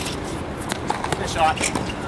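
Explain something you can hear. Sneakers squeak and scuff on a hard court.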